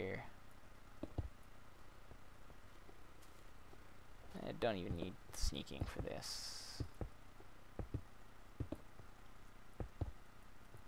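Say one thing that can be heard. Footsteps tread on stone with dull, regular thuds.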